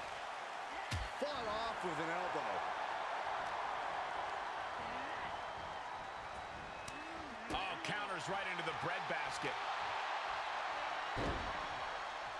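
Wrestlers' bodies thud hard onto the ring mat.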